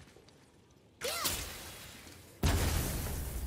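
An axe smashes into a wooden crate with a loud crack.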